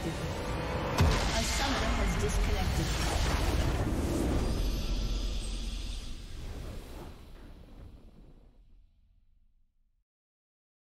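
A triumphant victory fanfare swells and then slowly fades to silence.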